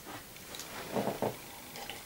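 A young woman sips a drink from a mug.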